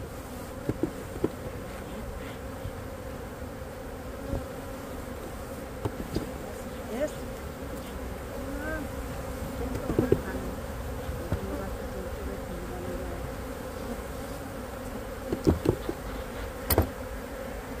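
Wooden hive frames knock and scrape against the boxes.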